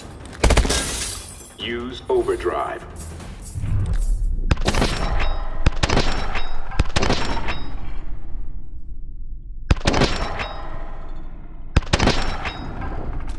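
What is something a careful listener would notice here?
A rifle fires in sharp, rapid bursts, with each burst ringing out in a large echoing hall.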